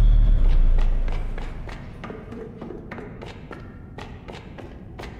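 Light footsteps tap on a hard floor.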